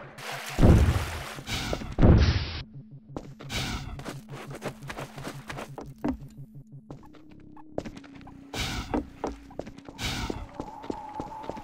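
Footsteps scuff quickly over concrete and gravel.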